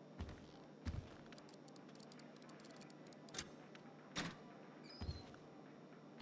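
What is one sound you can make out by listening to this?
A safe's dial clicks several times.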